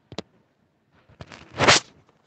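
Fingers rub and knock against the recording phone close up.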